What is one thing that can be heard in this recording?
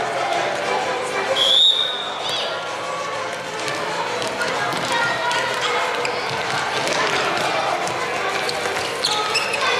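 A football is kicked on a hard indoor court.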